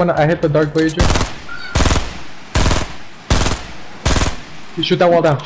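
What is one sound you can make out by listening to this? A rifle fires loud single shots in a steady series.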